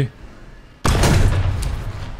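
A tank cannon fires with a loud boom that rumbles away.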